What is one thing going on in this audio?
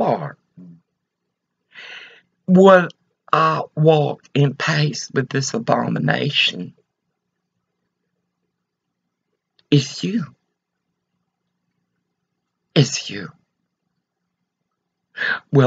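An elderly woman speaks calmly and close to a microphone, with pauses.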